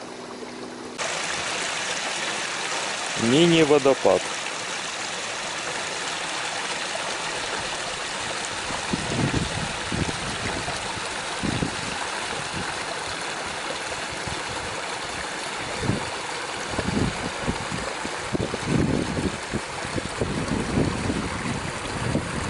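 A stream trickles and babbles over stones close by.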